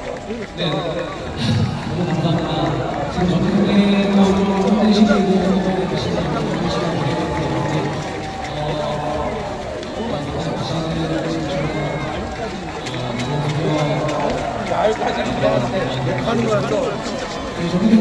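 A young man speaks calmly over echoing stadium loudspeakers.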